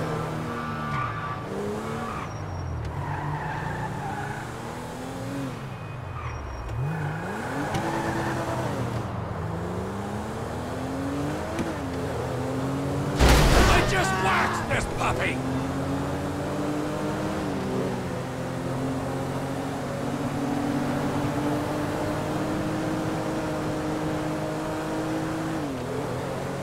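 A sports car engine revs and roars, rising and falling through the gears.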